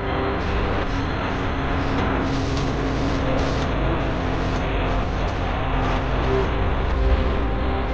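Wind rushes past steadily at speed.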